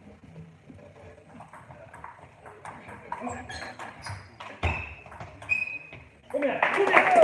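A ping-pong ball clicks back and forth off paddles and a table in a large echoing hall.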